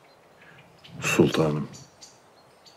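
A man speaks calmly and quietly.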